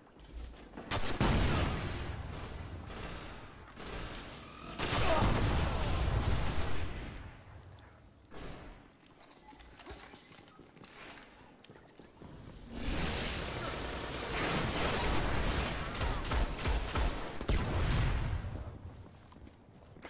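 Rifle shots crack.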